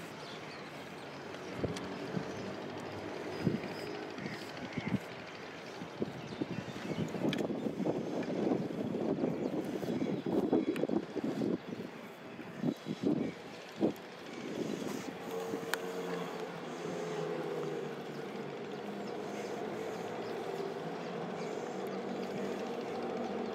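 Thread rustles and scrapes as hands work a net.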